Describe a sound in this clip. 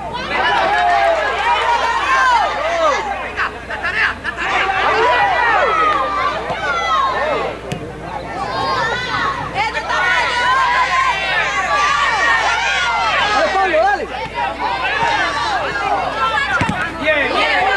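A ball thuds as children kick it on a field.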